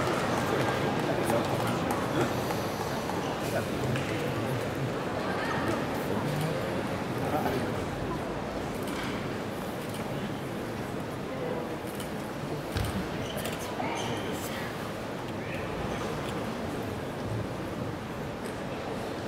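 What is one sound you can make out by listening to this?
A crowd murmurs throughout a large hall.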